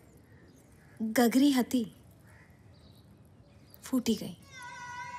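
A young woman speaks sorrowfully, close by.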